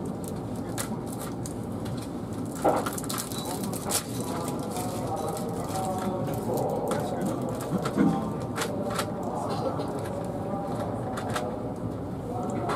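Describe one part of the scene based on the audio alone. A train hums and rumbles steadily along the rails.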